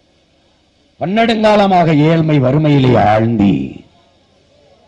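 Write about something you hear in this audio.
A man speaks forcefully into a microphone through loudspeakers.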